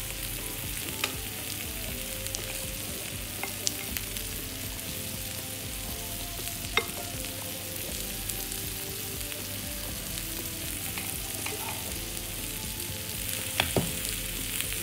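A utensil clinks against a metal pot.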